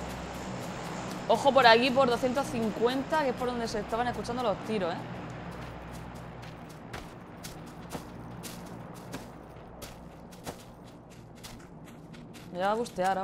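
Footsteps tread steadily on grass.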